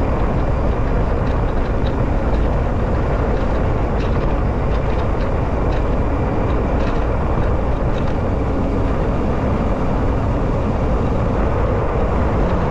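Tyres crunch over gravel and loose stones on a dirt road.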